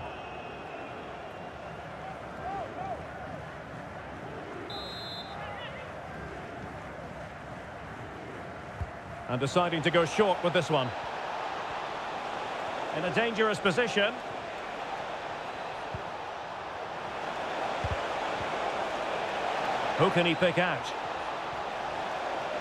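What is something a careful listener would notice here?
A stadium crowd roars steadily and swells louder toward the end.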